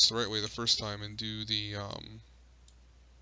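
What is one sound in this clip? A young man speaks calmly and close into a microphone.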